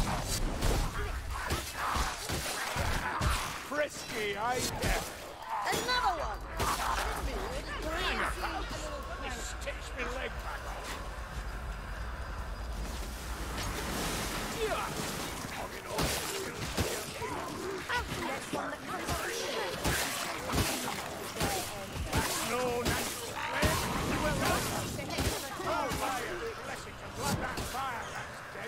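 Blades slash and thud into flesh in rapid bursts.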